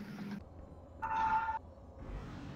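A magic spell zaps with a short ringing tone.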